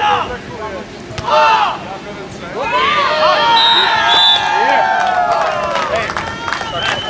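Players shout and call out to each other outdoors.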